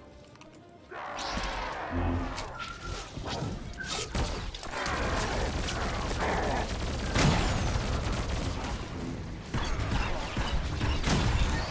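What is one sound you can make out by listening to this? Weapons clash and hit repeatedly.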